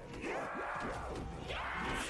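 A heavy gun fires rapidly.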